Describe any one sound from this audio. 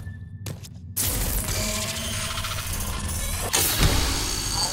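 A metal crate unlocks and opens with a mechanical whir.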